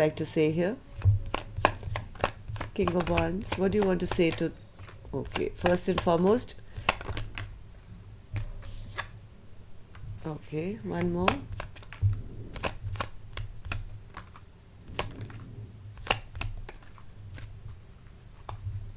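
Playing cards are shuffled, riffling and snapping together.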